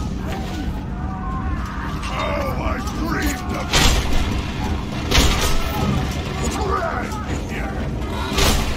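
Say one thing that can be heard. Gunshots and explosions go off in a video game.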